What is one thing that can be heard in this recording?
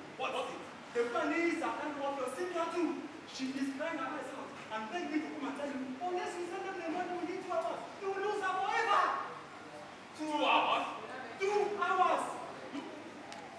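A young man speaks loudly and with animation on a stage.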